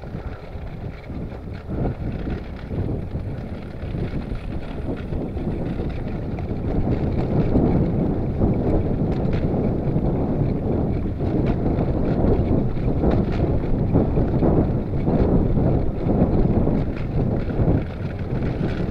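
Small wheels rumble and rattle over a rough road surface.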